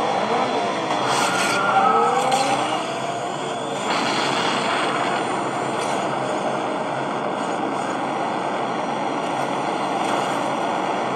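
A racing car engine roars loudly at high speed.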